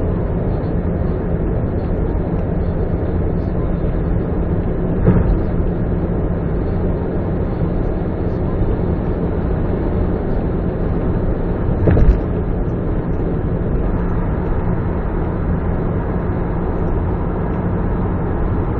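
A car's engine and tyres rumble steadily at highway speed.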